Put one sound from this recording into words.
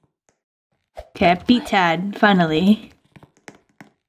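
A young girl speaks with animation through a microphone.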